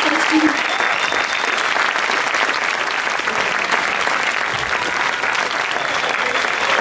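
A crowd applauds and cheers outdoors.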